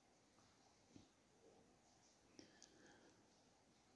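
Knitting needles click softly against each other.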